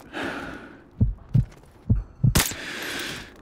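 Muffled rifle shots thud several times in quick succession.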